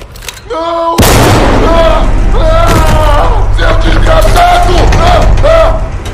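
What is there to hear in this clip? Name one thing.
A young man exclaims loudly and with animation into a microphone.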